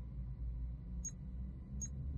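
A soft menu click sounds as a selection changes.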